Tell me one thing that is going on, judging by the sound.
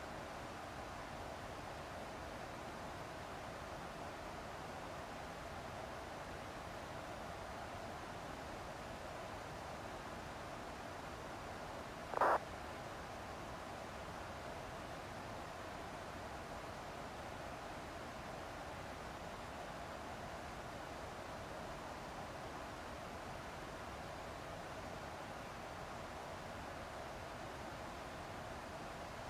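A jet airliner's engines hum in a steady, muffled drone.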